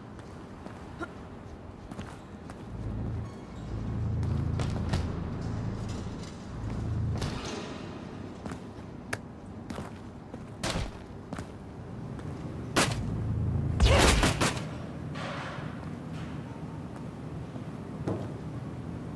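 Heavy crates thud and clatter against each other.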